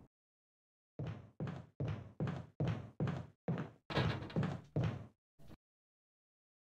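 Footsteps thud on a hard floor at a steady pace.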